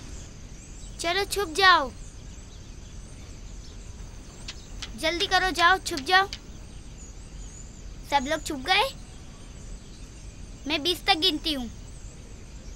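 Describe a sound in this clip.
Children call out loudly in high voices, in short bursts.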